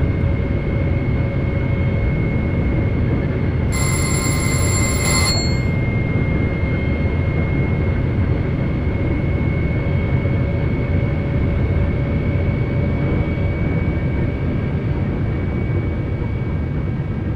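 A steady electric motor whine hums inside the train cab.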